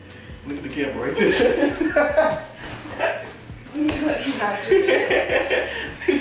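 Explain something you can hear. A young man laughs nearby.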